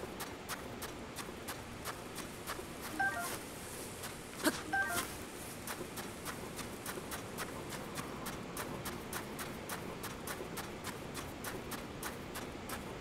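A steady wind blows with a soft hiss.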